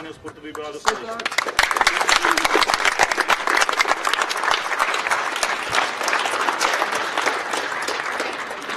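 A crowd claps its hands.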